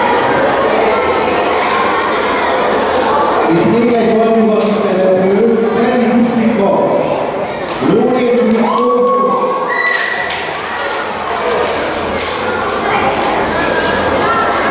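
A middle-aged man speaks through a microphone and loudspeaker in an echoing hall.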